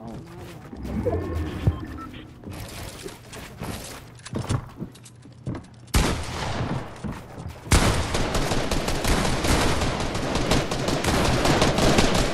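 Wooden building pieces snap and clatter into place in quick bursts.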